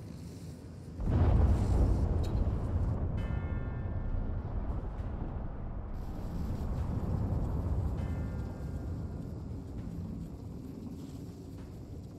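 A deep rumbling roar bursts out and slowly fades.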